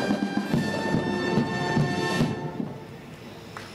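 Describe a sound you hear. A military brass band plays a march loudly.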